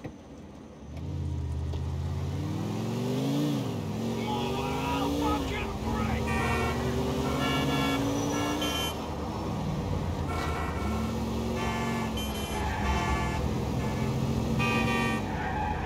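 A car engine starts and revs, rising and falling in pitch as it shifts gears.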